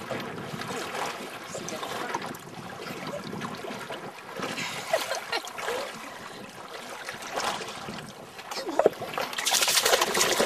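Water splashes and laps near the surface.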